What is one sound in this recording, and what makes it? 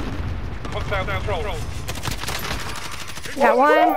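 A rifle fires several rapid shots.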